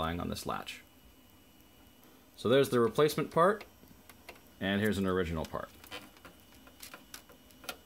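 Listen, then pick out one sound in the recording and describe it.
A plastic panel clicks as a finger presses it.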